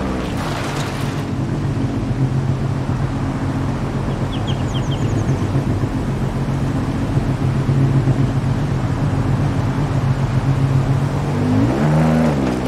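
A sports car engine idles with a steady, deep rumble.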